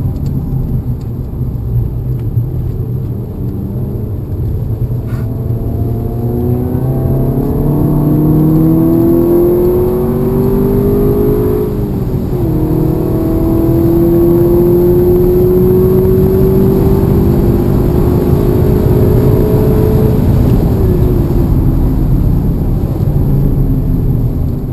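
Wind and road noise rumble steadily around a moving car.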